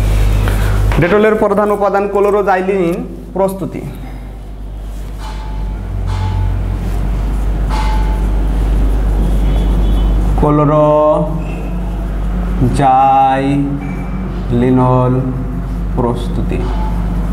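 A man speaks calmly and close by, pausing often.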